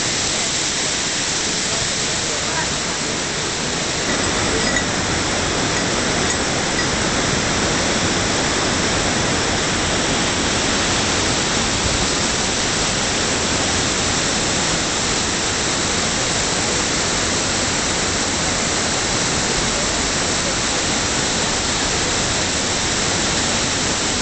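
A waterfall rushes and splashes loudly close by.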